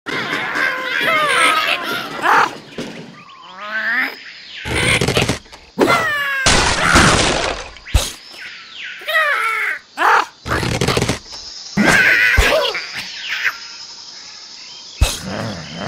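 Cartoon birds squawk and chatter in high squeaky voices.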